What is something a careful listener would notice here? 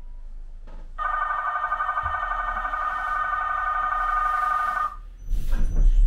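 An electronic warning tone sounds steadily.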